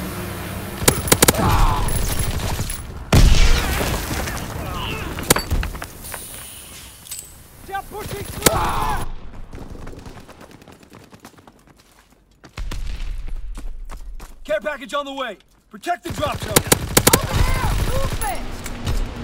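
Gunfire rattles in sharp bursts.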